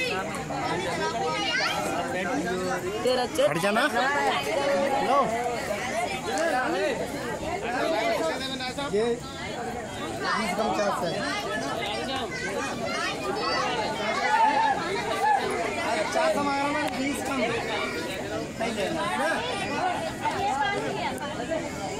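A crowd of men and women chatter nearby in a busy, echoing hall.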